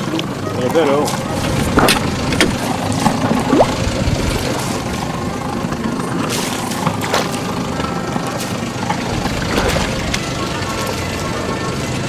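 Water laps and splashes against the side of a small boat.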